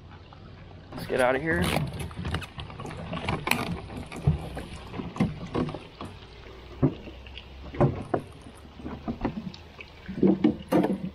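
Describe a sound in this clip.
Items knock and thump against a boat's hard deck.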